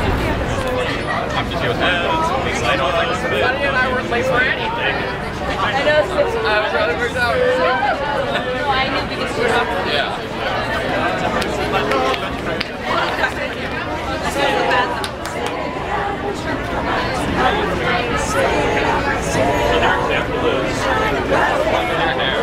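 A crowd of young people chatters and laughs close by, outdoors.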